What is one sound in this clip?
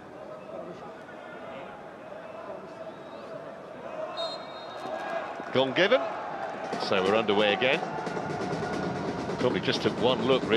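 A stadium crowd murmurs and cheers in a large open space.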